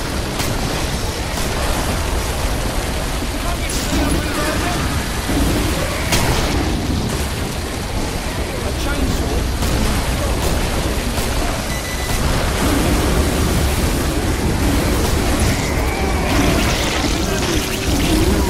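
A flamethrower roars steadily.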